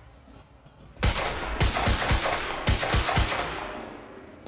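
A pistol fires in quick bursts.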